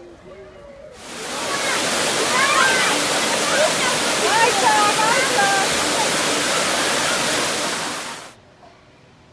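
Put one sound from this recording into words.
Water rushes and splashes loudly down a steep cascade.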